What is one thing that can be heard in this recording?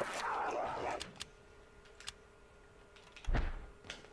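A menu selection clicks.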